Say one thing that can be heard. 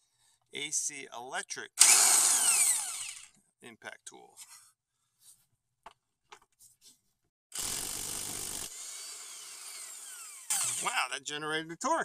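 An air impact wrench whirs and hammers in loud bursts.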